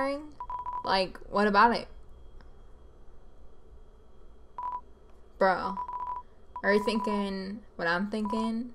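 Rapid electronic beeps chatter in short bursts.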